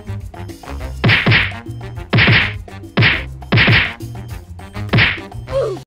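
A game weapon blasts again and again with loud whooshing bursts.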